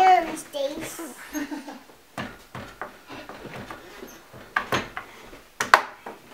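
A young boy laughs.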